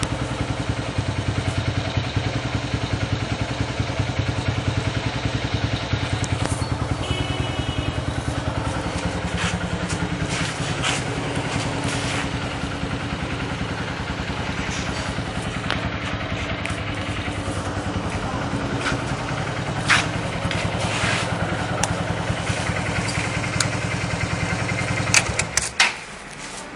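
A motorcycle engine idles nearby with a steady, rapid low putter.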